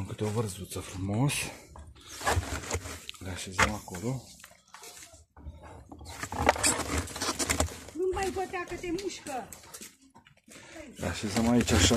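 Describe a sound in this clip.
Cabbage leaves rustle and squeak as a hand handles them in a plastic bin.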